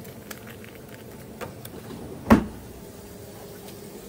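A plastic cup lid snaps shut.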